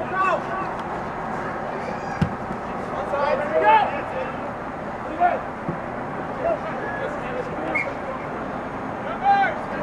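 Spectators call out and cheer from the sidelines.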